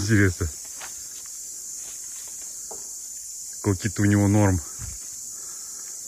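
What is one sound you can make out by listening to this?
A lemur bites and chews a piece of fruit up close.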